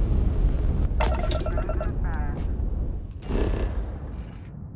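Cockpit controls beep and chime.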